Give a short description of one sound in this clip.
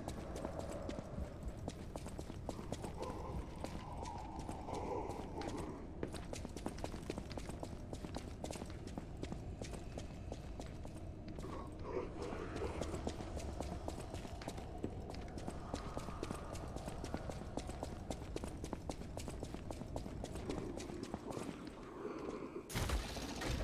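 Quick footsteps run across a stone floor.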